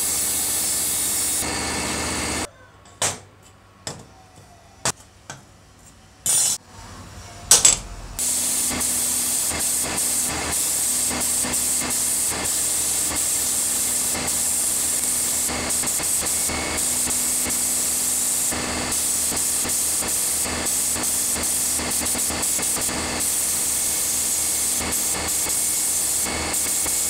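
A sandblasting gun hisses loudly and steadily.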